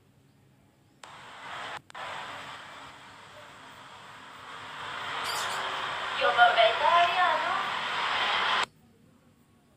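A young woman talks close to a phone microphone.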